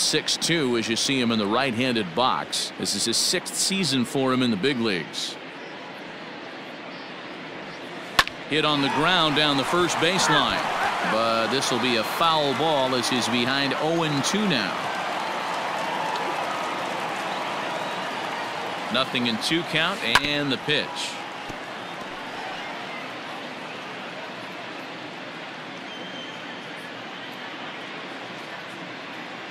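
A crowd murmurs steadily in a large open stadium.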